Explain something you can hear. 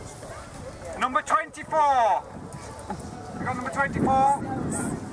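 A man talks loudly through a megaphone.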